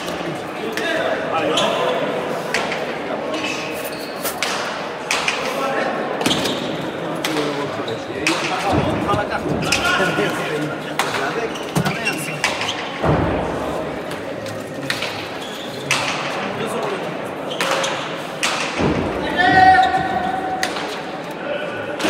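Players' shoes squeak and thud on the court floor.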